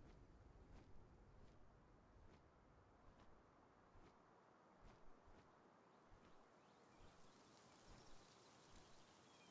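Large wings flap in a steady rhythm.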